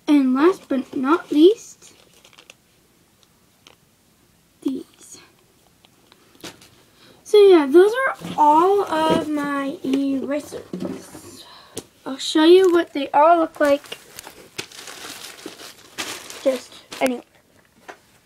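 A young girl talks with animation close to the microphone.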